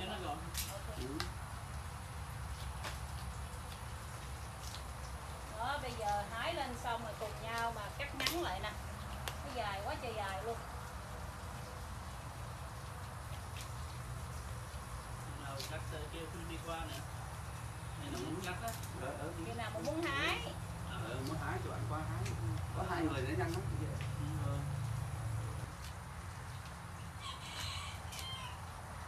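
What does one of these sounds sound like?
Shears snip through soft plant stems.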